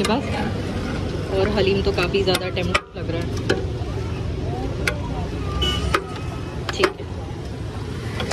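A metal ladle clinks and scrapes against a large pot.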